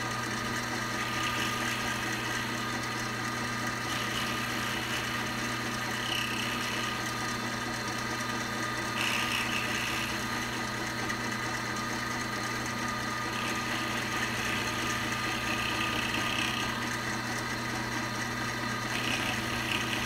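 A cutter grinds and scrapes against metal in bursts.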